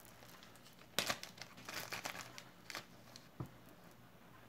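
Glass beads click and clatter against each other in a hand.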